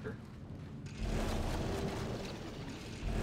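A large craft roars overhead with a deep rumble.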